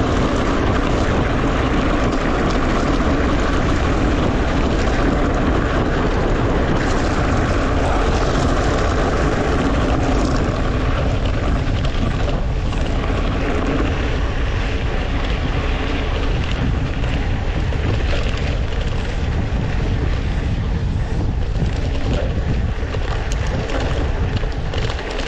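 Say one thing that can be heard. Bicycle tyres crunch and rattle over a gravel dirt road.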